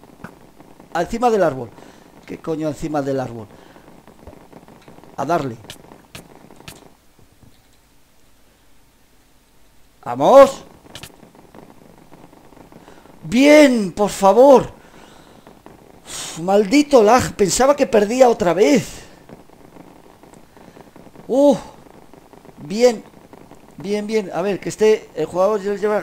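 A boy talks with animation into a close microphone.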